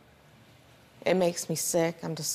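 A woman speaks calmly close to a microphone.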